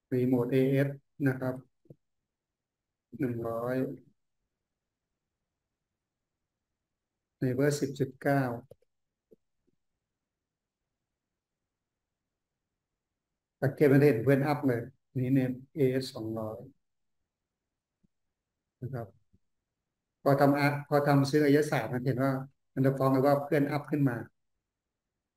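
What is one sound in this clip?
A man speaks calmly in short phrases through a microphone on an online call.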